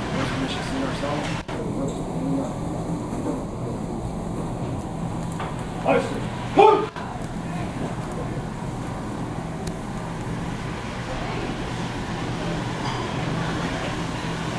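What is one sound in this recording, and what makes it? A crowd of people murmurs and chatters in a large room.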